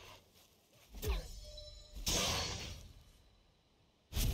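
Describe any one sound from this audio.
A burst of magic whooshes and crackles.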